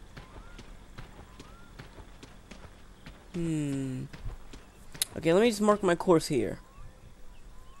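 Footsteps tread steadily on dirt.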